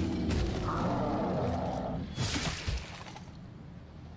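A heavy weapon swings and whooshes through the air.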